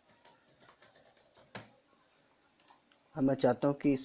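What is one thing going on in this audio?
Keys tap on a keyboard.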